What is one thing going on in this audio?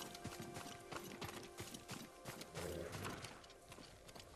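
Footsteps crunch quickly over a dirt path.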